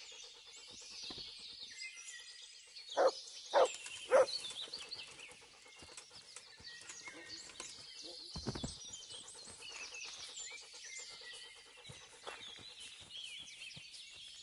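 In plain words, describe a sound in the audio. A body is dragged through rustling tall grass.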